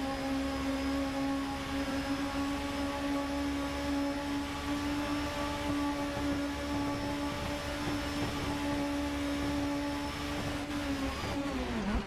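A racing car engine screams at high revs.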